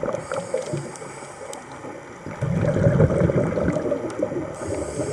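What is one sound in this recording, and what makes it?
Water rumbles and gurgles close by underwater.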